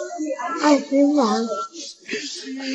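A young child speaks in a high, plaintive voice close by.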